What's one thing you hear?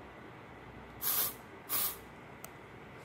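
An aerosol can sprays in two short hisses.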